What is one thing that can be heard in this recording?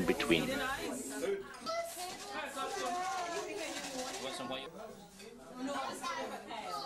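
Women talk with one another nearby.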